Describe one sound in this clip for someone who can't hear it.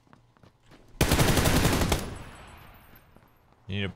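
Rapid gunfire rattles loudly, then echoes away.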